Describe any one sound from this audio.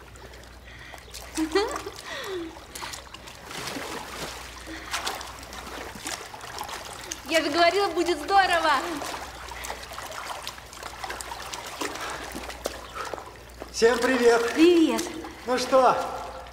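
Water splashes as people swim.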